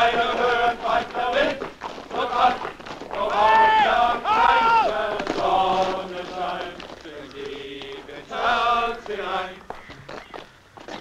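Many boots tramp on a road.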